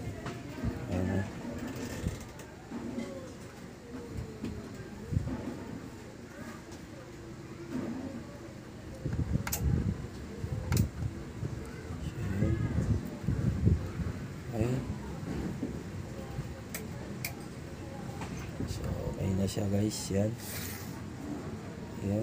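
A knob clicks as it is turned.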